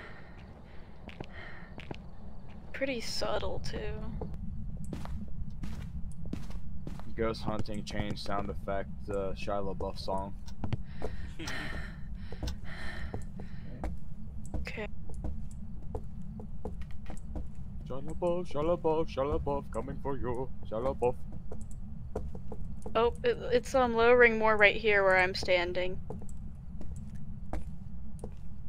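Slow footsteps thud on a hard floor.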